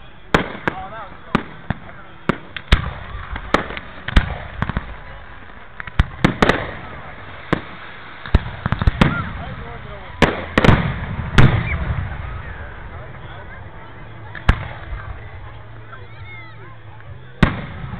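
Rockets whistle as they shoot upward.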